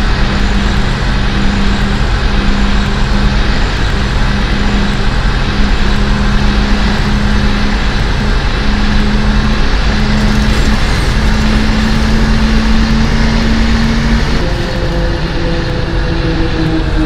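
A bus engine hums steadily and shifts pitch near the end.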